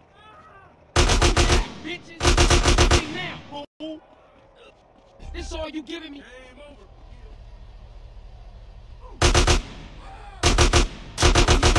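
A rifle fires loud rapid bursts.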